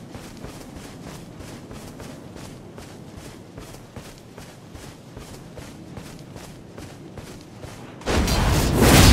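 Heavy footsteps tread steadily on stone.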